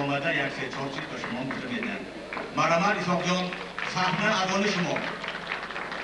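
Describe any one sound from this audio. A man speaks loudly into a microphone, heard through loudspeakers.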